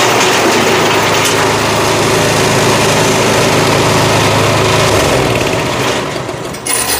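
Corn cobs rattle through a threshing machine.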